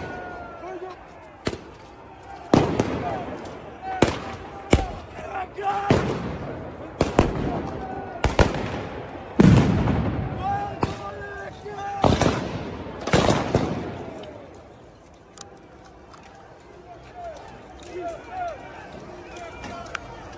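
A crowd of men shout and yell.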